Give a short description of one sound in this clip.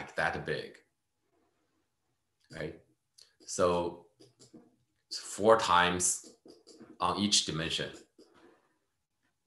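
An elderly man speaks calmly through a microphone, as if on an online call.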